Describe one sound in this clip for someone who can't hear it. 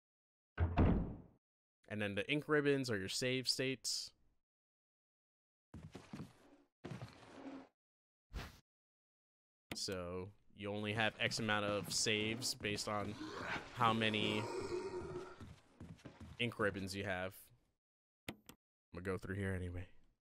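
A man talks with animation into a close microphone, in bursts.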